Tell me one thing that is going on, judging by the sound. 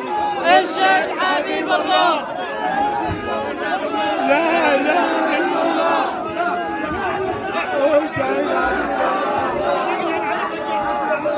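A crowd of men murmurs and calls out around them.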